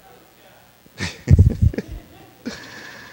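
A man chuckles.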